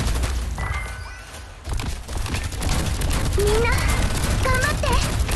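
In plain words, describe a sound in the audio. Weapons clash and strike in quick bursts during a battle.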